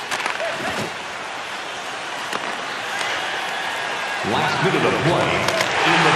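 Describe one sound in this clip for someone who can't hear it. Skates scrape on ice.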